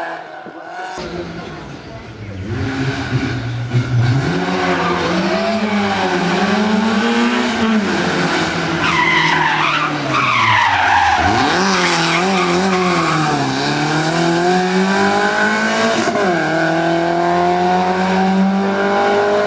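A rally car engine revs hard, rising and falling as the car brakes and shifts gears close by.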